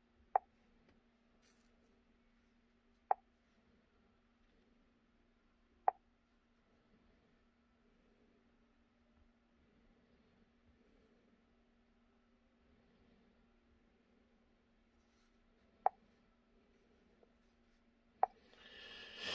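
A touchscreen device gives short beeps as it is tapped.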